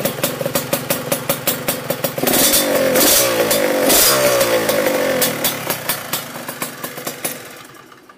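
A motorcycle engine idles with a loud popping exhaust, then revs up twice and settles back.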